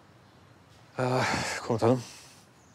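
A man speaks loudly and firmly nearby.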